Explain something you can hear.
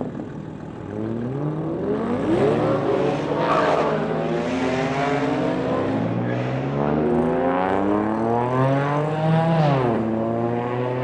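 A car engine revs loudly, rising and falling through its gears as the car pulls away.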